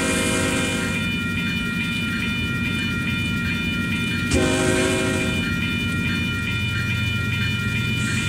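A crossing bell rings in rapid, steady strokes.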